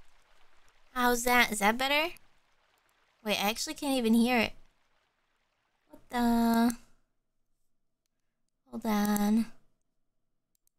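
A young woman sings short, drawn-out notes close to a microphone.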